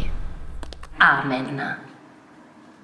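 A woman speaks close by in a calm, low voice.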